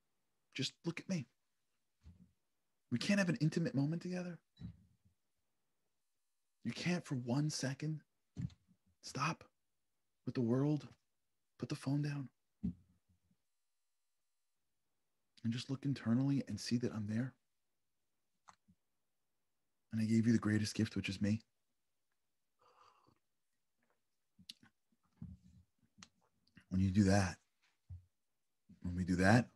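A man talks calmly and with animation close to a microphone, in short bursts with pauses.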